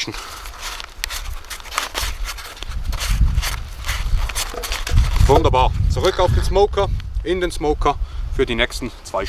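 Paper crinkles and rustles as it is handled.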